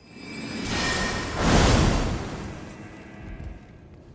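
A magic sword surges with a loud shimmering whoosh that swells and fades.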